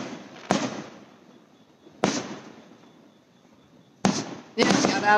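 Fireworks bang loudly outdoors, with echoes.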